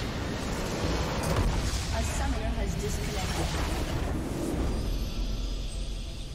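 A large structure explodes with a deep boom.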